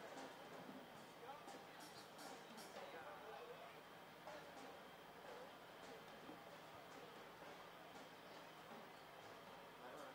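Drums and cymbals are struck.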